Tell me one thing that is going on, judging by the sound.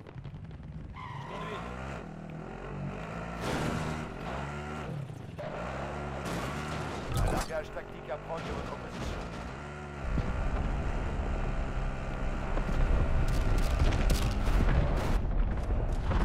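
An off-road vehicle's engine roars and revs as it drives over rough ground.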